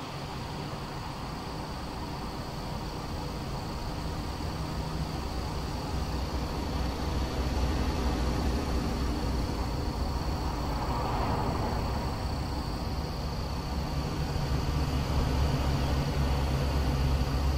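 A heavy truck engine rumbles low and steadily, growing louder.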